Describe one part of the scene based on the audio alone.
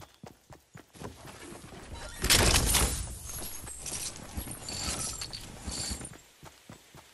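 Loot clatters and chimes as it is picked up.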